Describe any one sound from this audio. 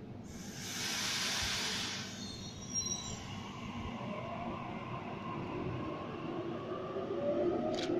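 An electric passenger train pulls away from a platform.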